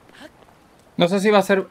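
A young man speaks loudly and animatedly close to a microphone.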